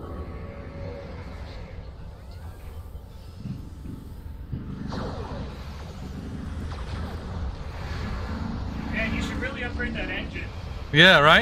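Spaceship energy weapons fire in rapid bursts.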